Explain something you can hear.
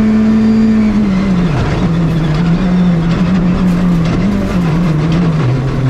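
A rally car engine drops in pitch, then revs up and down.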